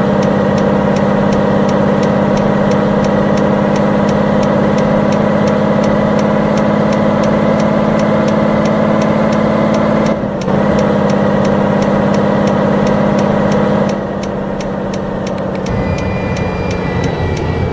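A truck engine hums steadily as the truck drives along a road.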